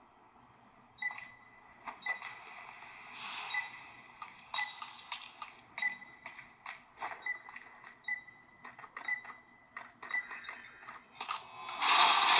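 Game sound effects ring out in quick bursts from a phone's speaker.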